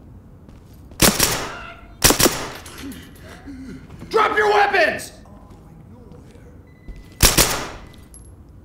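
Gunshots crack loudly in an echoing hallway.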